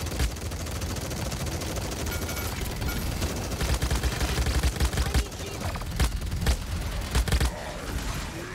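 Heavy gunfire and fiery blasts crackle and roar.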